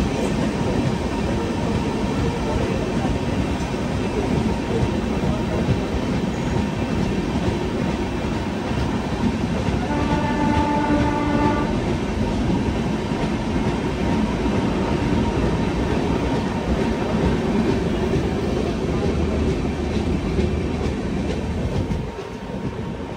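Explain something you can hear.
A passing train roars and rattles close by.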